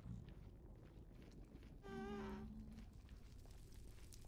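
Fire crackles softly.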